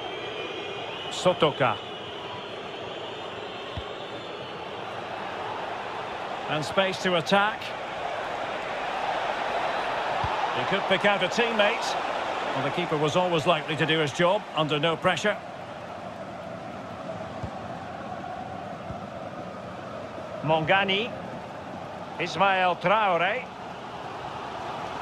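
A large crowd murmurs and cheers steadily, as if across a wide stadium.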